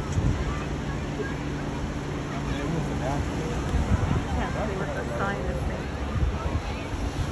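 People chatter and call out in the distance.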